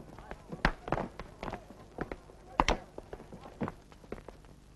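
Footsteps and knocks clatter nearby.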